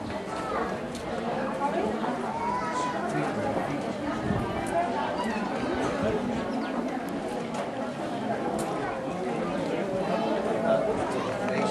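Footsteps shuffle on a paved street.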